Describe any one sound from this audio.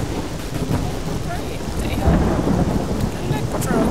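Thunder rumbles in a storm.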